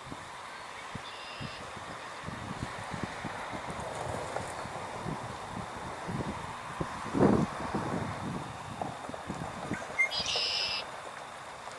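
Dry reeds rustle and crackle as a large bird pushes through them.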